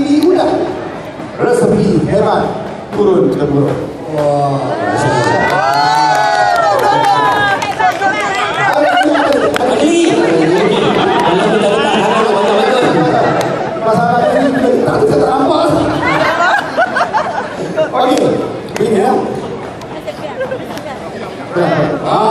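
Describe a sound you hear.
A man sings into a microphone, heard over loudspeakers in an echoing hall.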